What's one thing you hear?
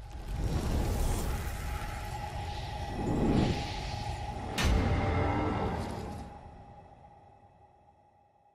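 Whooshing swishes and a low rumble sweep through, then fade out.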